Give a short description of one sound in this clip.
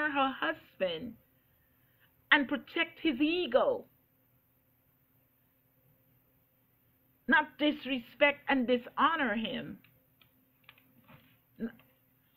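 An older woman speaks calmly and expressively, close by, with pauses.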